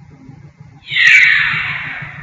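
A loud electronic whoosh sweeps down in pitch and fades.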